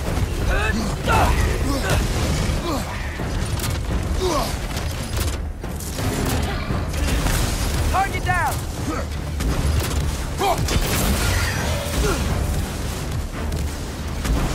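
Heavy blows land with dull thuds.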